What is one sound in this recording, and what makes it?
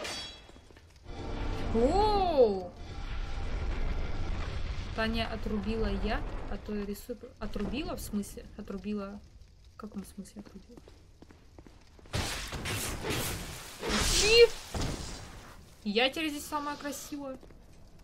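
A young woman talks with animation into a microphone.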